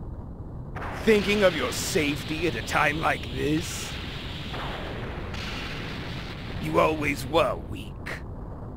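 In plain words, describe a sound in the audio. A man speaks in a cold, mocking voice.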